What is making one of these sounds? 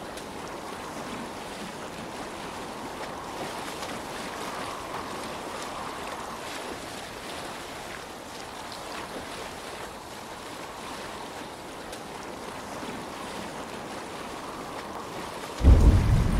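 Oars splash in the water.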